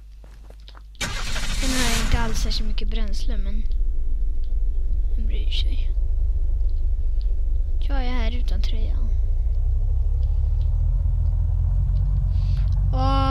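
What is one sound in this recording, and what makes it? A vehicle engine starts and rumbles steadily while driving.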